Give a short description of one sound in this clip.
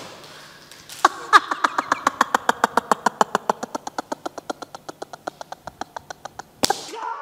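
A man laughs hard in rapid bursts.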